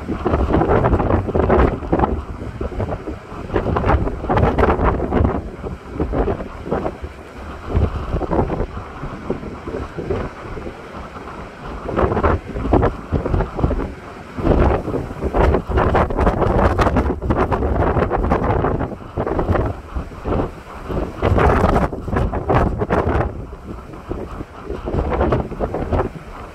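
Rough surf crashes and roars in the distance.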